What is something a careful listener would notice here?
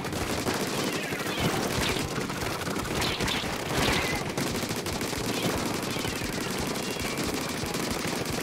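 Ink weapons splat and spray in rapid bursts.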